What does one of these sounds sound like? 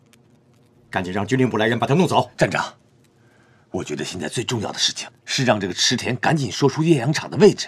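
A young man speaks firmly and at length.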